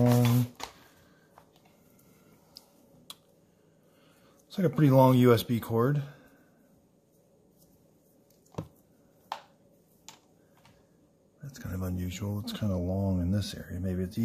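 A cable rustles and clicks as it is unwound.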